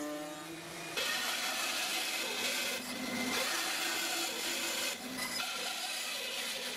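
A band saw buzzes as it cuts through wood.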